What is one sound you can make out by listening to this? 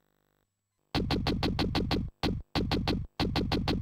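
A video game plays rapid, pulsing electronic beeps.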